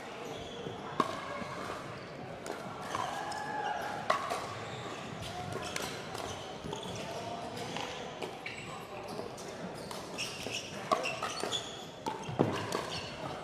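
Paddles strike a plastic ball with sharp pops.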